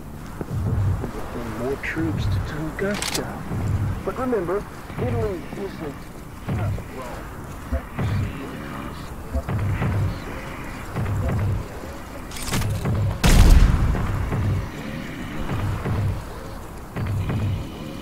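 Footsteps thud steadily on the ground.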